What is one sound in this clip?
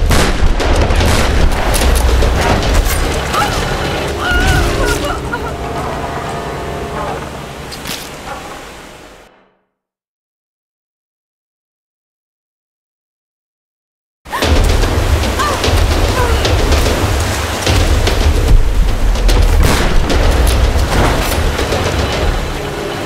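Rushing river water roars and splashes.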